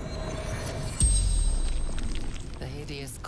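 A deep magical boom bursts out, then rumbles away.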